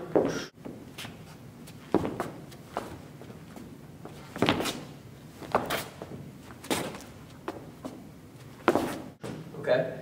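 Sneakers tap and scuff on a hard floor.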